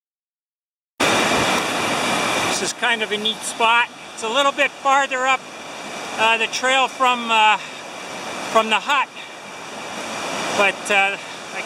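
A mountain stream rushes and splashes over rocks close by.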